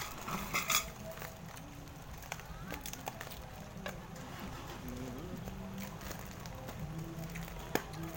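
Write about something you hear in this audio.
A girl chews noisily close by.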